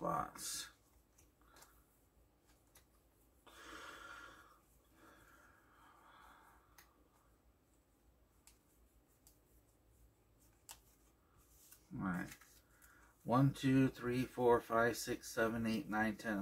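Playing cards rustle and slide as they are shuffled by hand.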